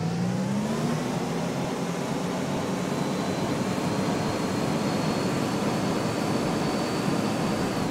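A bus engine drones steadily while the bus drives along.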